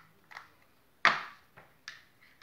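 A small glass jar clinks against a hard surface.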